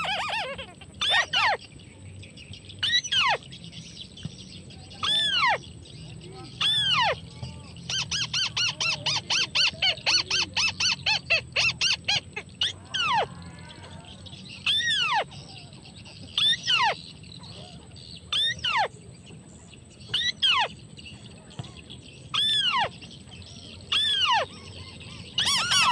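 A bird nearby gives loud, sweeping whistled calls again and again.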